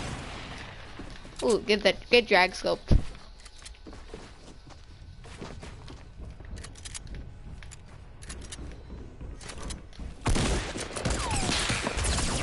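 Wooden building pieces snap into place with quick clacks.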